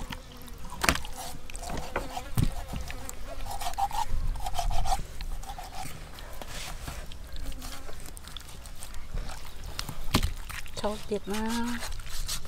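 A knife slices through raw meat.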